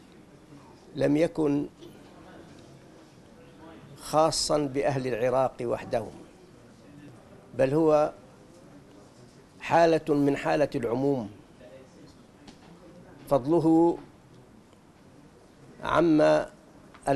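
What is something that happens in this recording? An elderly man speaks slowly into a microphone, pausing between phrases.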